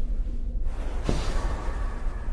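A footstep lands on a hard floor.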